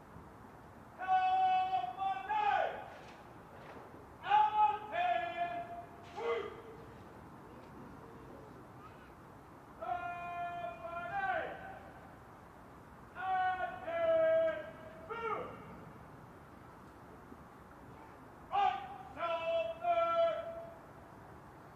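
A man shouts drill commands in long drawn-out calls, outdoors at a distance.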